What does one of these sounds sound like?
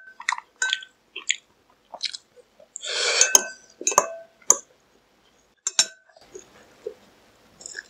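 A young man slurps noodles loudly, close to a microphone.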